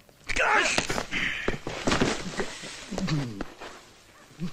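Men shout and scuffle.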